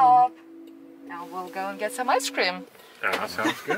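An electronic chime sounds inside a car.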